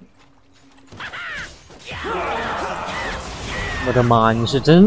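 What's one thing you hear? Game spell effects whoosh and crackle during a fight.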